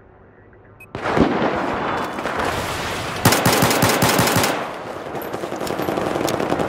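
A rifle fires rapid bursts of loud gunshots.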